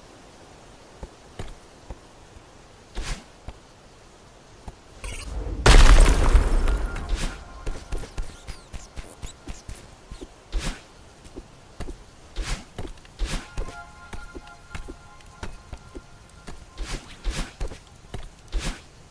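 Short game sound effects click and whoosh as a character jumps and dashes.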